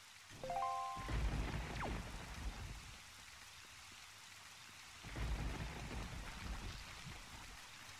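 Thunder rumbles loudly.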